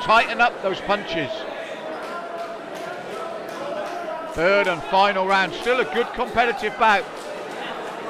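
Men in the crowd shout loudly and excitedly.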